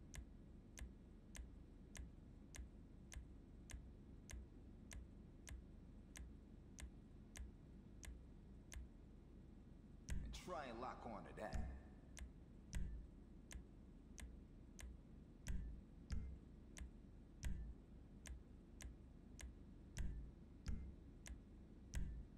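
Soft menu clicks tick at a steady pace.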